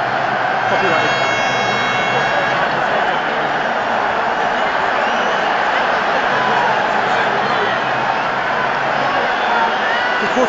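A large stadium crowd roars and chants loudly all around.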